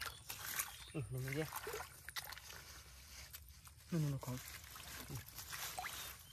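Hands squelch and pull plants out of wet mud.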